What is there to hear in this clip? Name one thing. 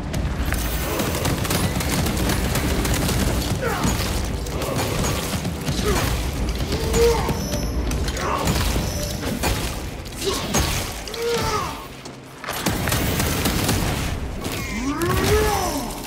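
Rapid gunfire crackles in loud bursts.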